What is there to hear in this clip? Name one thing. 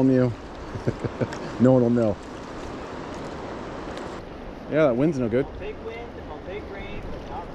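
A fishing reel clicks and whirs as it is cranked.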